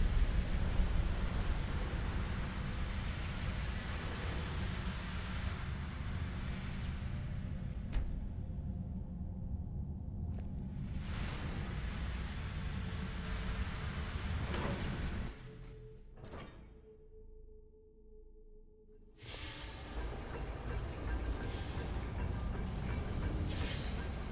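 Heavy footsteps thud on a stone floor.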